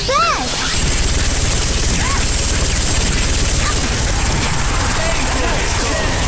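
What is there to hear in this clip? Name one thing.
A rapid-fire gun shoots in quick, steady bursts.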